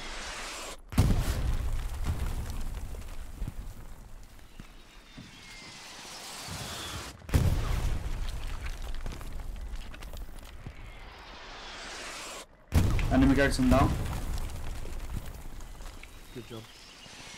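Artillery shells explode with deep booms that rumble away.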